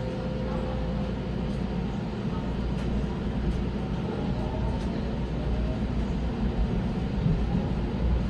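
An electric commuter train pulls away from a platform.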